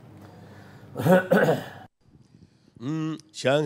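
A middle-aged man speaks through a microphone.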